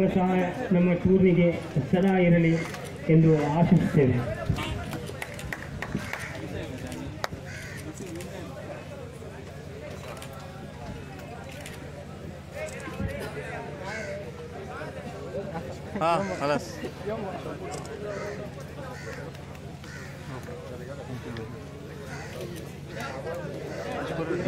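A crowd of men chatters and calls out nearby.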